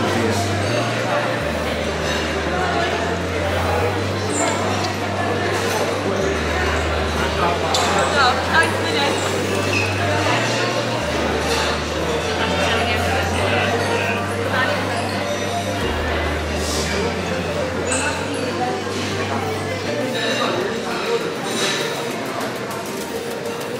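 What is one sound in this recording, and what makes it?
A crowd chatters all around in a busy indoor space.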